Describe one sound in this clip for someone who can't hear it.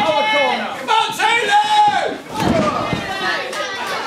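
A wrestler's body slams onto a ring canvas with a heavy thud.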